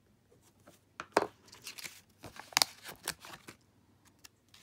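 A sheet of sticker paper rustles and crinkles in hand.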